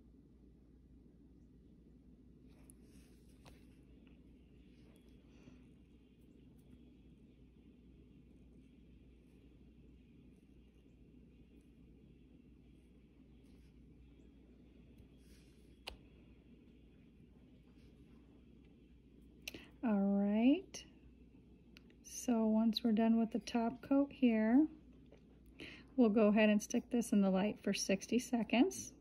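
A nail polish brush strokes softly across a fingernail.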